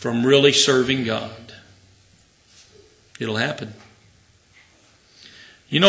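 An elderly man speaks slowly and firmly into a microphone.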